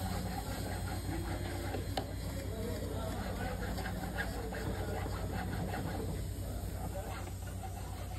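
A metal file rasps back and forth across metal.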